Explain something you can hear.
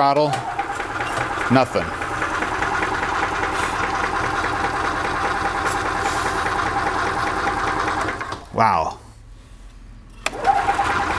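An electric cart motor hums and whines with a steady buzz, cuts out briefly, then starts again.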